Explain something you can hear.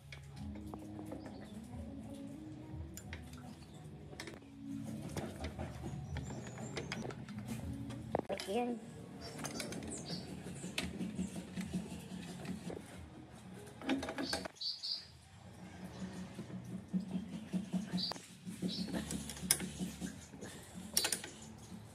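A wrench clicks and clinks against metal bolts.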